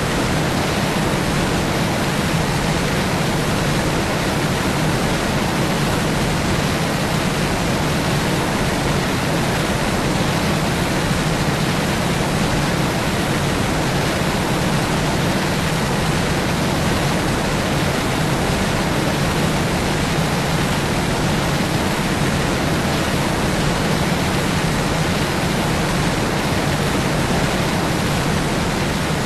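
A propeller plane's engines drone steadily in flight.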